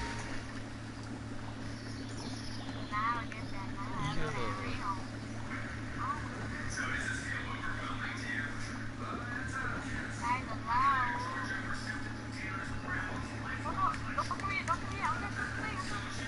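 Water sloshes gently around a swimmer.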